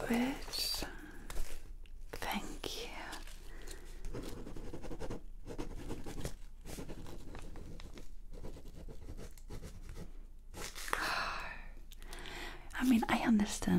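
A young woman whispers close to a microphone.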